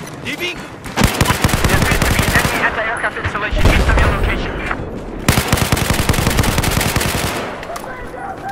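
A rifle fires rapid bursts at close range.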